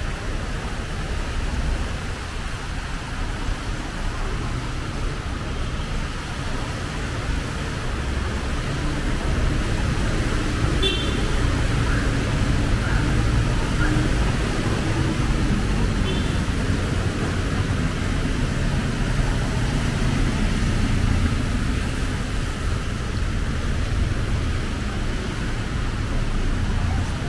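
Traffic rumbles steadily on a wet road.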